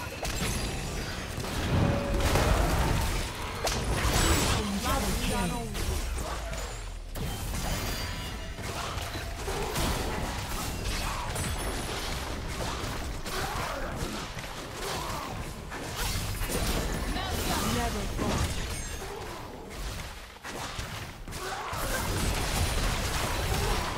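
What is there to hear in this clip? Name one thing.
Fantasy battle effects whoosh, clash and burst in quick succession.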